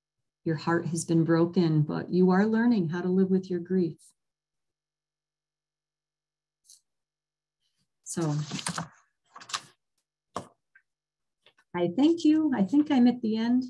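An elderly woman speaks calmly over an online call.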